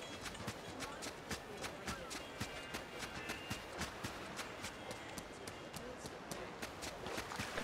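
Footsteps run quickly and evenly.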